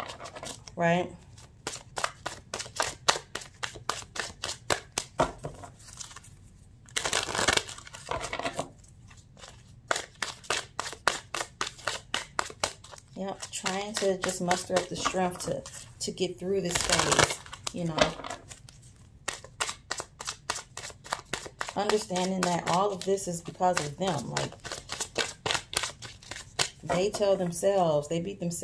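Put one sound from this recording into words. Playing cards riffle and flick rapidly as a deck is shuffled.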